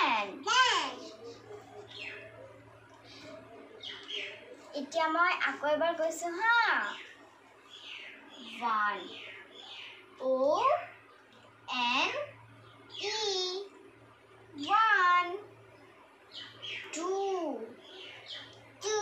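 A small girl repeats words in a high voice.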